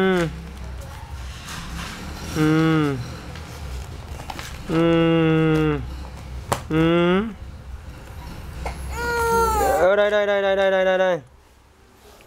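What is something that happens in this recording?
A woman sings playfully in short, drawn-out phrases close by.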